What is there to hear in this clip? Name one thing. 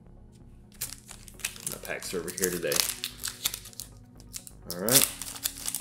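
Foil wrapping crinkles as hands tear open a pack.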